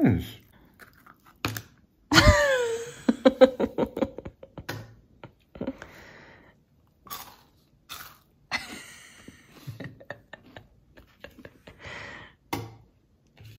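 A fork scrapes and clinks on a plate.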